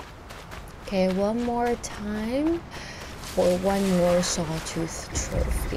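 A young woman speaks with animation into a microphone, close by.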